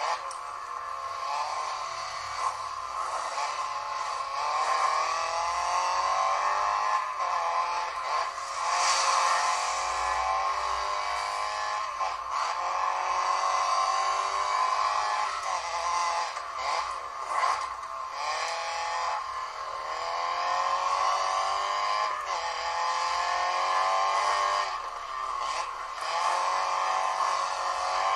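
A rally car's engine revs and whines through gear changes.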